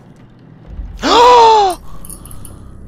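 A young man shouts out loudly into a close microphone.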